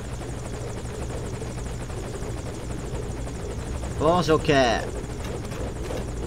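A helicopter hovers with a steady, low rotor drone.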